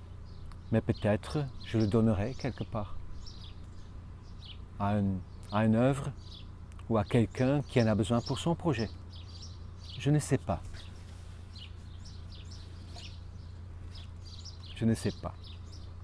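A middle-aged man speaks calmly and closely into a microphone.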